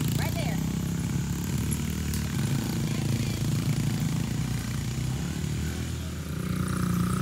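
A small quad bike engine buzzes and revs nearby.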